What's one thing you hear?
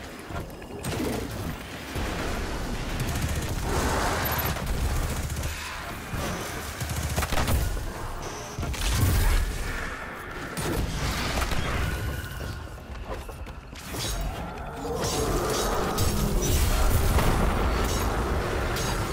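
Gunfire cracks rapidly in a video game.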